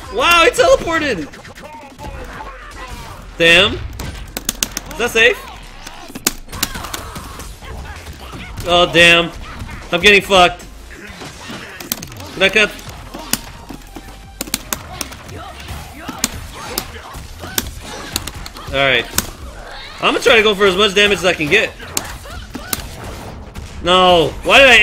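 Punches and kicks thud and crack in quick bursts.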